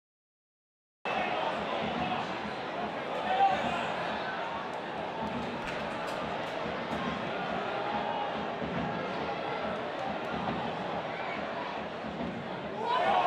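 A large stadium crowd murmurs.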